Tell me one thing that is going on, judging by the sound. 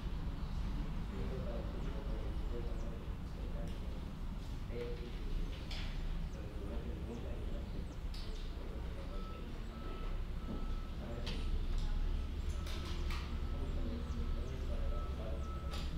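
A man speaks calmly through a microphone, as if explaining.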